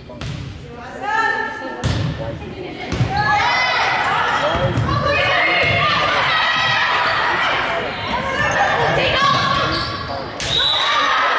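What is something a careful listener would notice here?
Young women shout and cheer loudly in a large echoing hall.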